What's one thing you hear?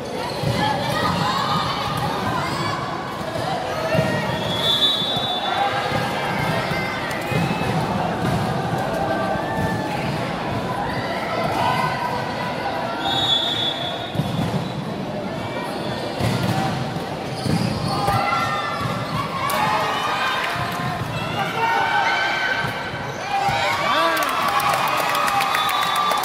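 Young women players call out to each other.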